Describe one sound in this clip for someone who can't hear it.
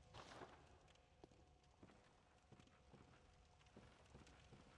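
Footsteps clank on a metal ladder going down.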